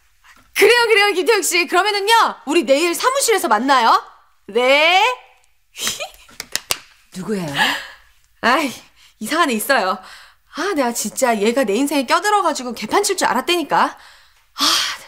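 A young woman talks animatedly on a phone.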